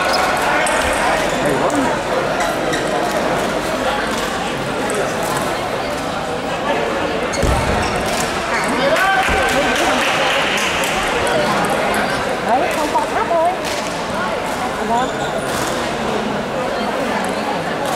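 A crowd chatters throughout a large echoing hall.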